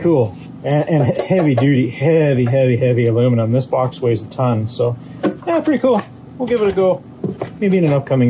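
Plastic parts knock and rattle as they are handled.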